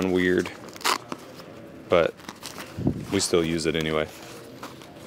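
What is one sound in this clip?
A padded guitar case rustles as hands handle it.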